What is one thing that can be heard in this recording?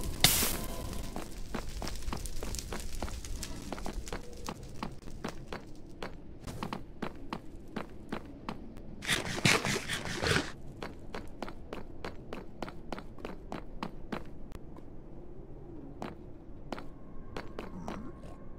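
Quick footsteps tap steadily on stone.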